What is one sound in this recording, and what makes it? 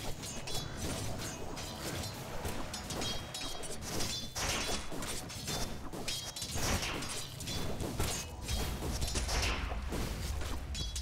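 Game characters clash with blades and spell effects in a fight.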